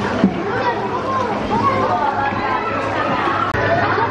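Young children chatter while playing.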